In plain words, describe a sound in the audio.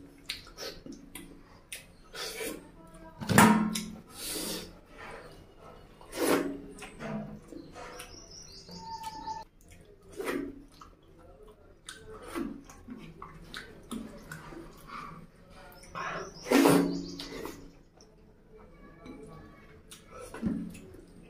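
A man chews and smacks his lips loudly up close.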